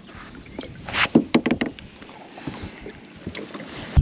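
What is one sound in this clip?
Water splashes as a fish thrashes beside a boat.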